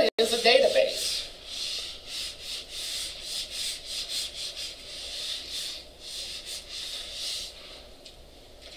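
An eraser rubs steadily across a whiteboard.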